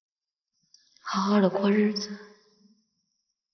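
A woman speaks softly and with emotion, close by.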